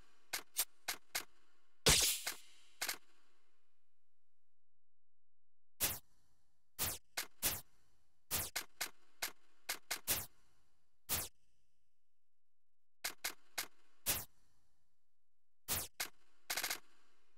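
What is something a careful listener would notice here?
Short electronic menu clicks and beeps sound in quick bursts.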